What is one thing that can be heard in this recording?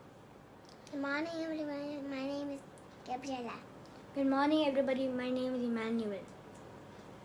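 A young boy speaks up close in a high voice, drawing out his words.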